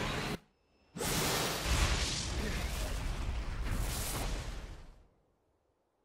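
A huge explosion booms and roars.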